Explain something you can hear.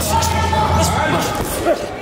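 A young man grunts sharply close by.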